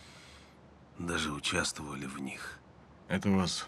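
A younger man answers quietly, close by.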